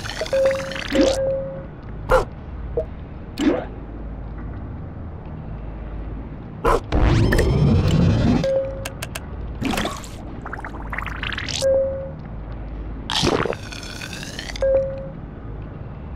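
Short menu sounds swish and beep as game panels open and close.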